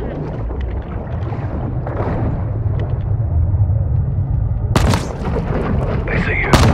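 Deep water rumbles low and muffled all around.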